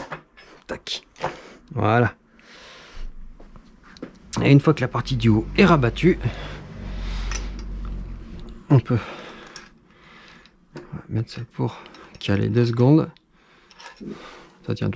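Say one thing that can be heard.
Metal parts click and knock as a scooter is handled and adjusted.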